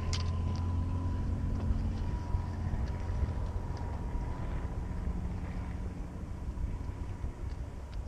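Footsteps scuff on tarmac.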